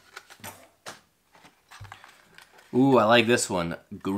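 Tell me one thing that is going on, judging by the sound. Plastic packaging crinkles in a man's hands.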